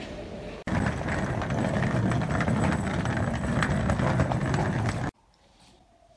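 A suitcase rolls along a pavement.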